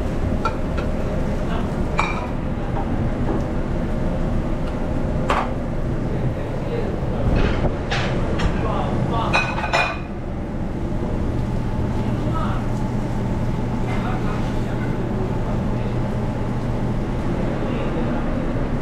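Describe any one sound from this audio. Eggs sizzle in hot pans.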